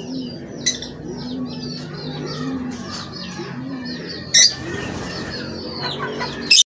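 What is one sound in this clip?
Chickens cluck softly.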